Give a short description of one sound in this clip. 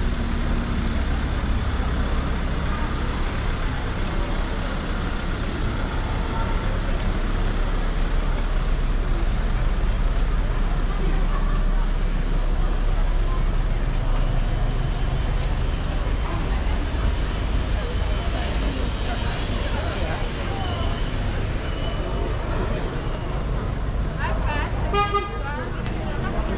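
A crowd of people chatters outdoors on a busy street.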